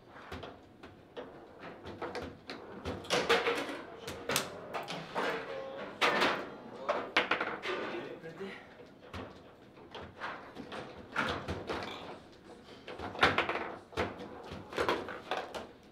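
Foosball rods clack and rattle as they spin.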